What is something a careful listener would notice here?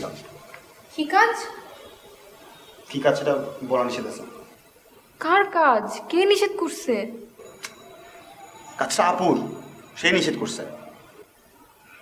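A young man speaks in a strained, troubled voice, close by.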